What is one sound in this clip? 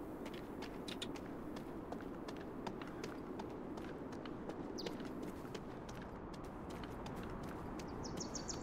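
Footsteps walk steadily on hard pavement.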